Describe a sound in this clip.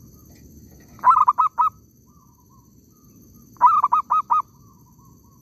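A dove coos in short, deep bursts nearby.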